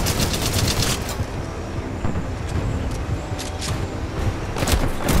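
A rifle magazine clicks into place during a reload.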